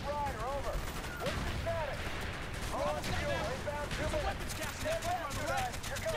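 Gunfire crackles in the distance.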